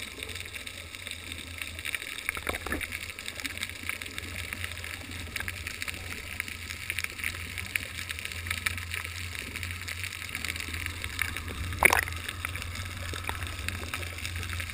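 Water swirls and crackles steadily, heard muffled underwater.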